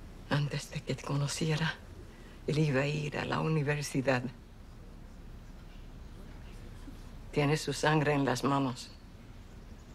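A middle-aged woman speaks quietly and slowly nearby.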